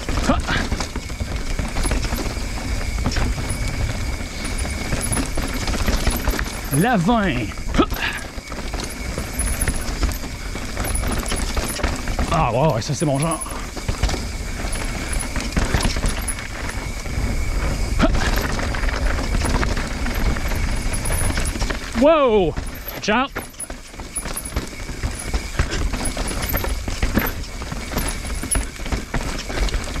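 Bicycle tyres crunch and rattle over a dirt and rocky trail.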